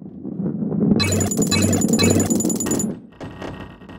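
Stacked boxes crash and tumble.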